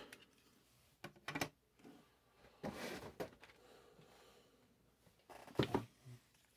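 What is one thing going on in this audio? Small metal spinning tops clatter on a wooden table.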